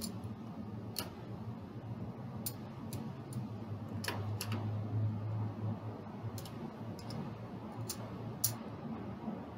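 Casino chips click and clack as they are stacked and moved on a felt table.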